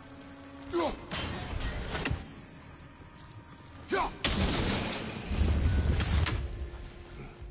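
A magical beam crackles and whooshes as a lantern is struck.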